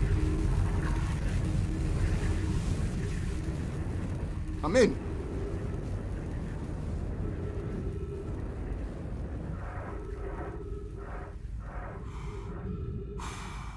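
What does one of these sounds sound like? A deep roaring rumble fills the air, then fades.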